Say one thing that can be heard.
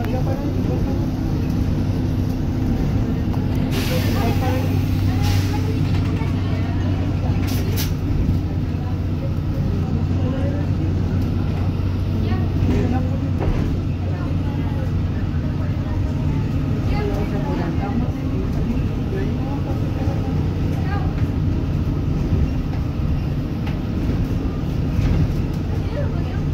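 A vehicle engine hums steadily from inside a moving vehicle.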